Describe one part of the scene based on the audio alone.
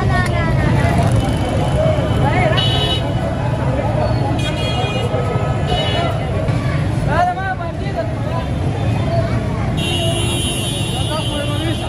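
Motorbikes and auto-rickshaws drive past on a street.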